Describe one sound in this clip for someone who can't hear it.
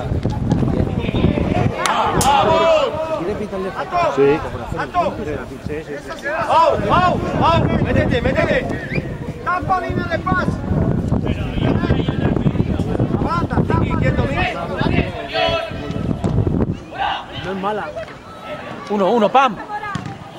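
Young men shout to each other outdoors, far and near.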